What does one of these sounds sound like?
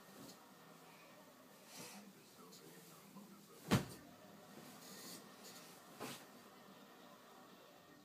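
A blanket rustles as it is shaken and pulled.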